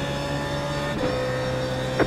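A racing car engine shifts gears.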